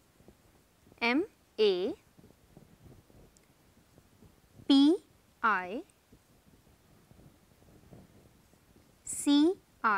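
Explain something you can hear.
A young woman speaks calmly in short phrases, close to a microphone.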